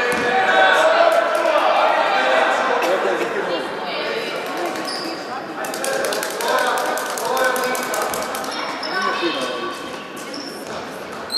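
Young players and spectators shout and call out in a large echoing hall.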